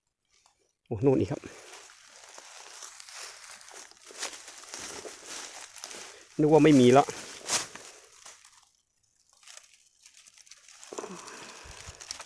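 Dry leaves and plants rustle and crackle.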